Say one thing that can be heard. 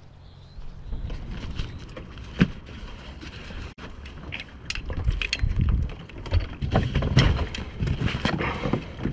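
A fabric bag rustles and scrapes as it is handled up close.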